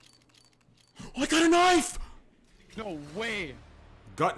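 A young man shouts excitedly close to a microphone.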